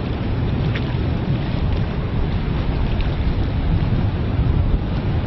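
Water splashes and rushes against boat hulls.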